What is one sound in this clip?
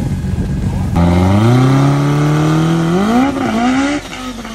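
A powerful car engine revs hard, rising and falling in pitch.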